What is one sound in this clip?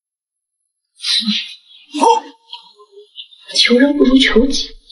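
A young woman speaks close by, with sharp emphasis.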